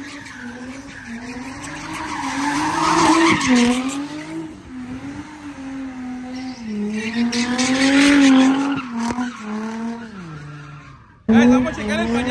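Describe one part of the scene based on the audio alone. A car engine revs hard and wavers in pitch.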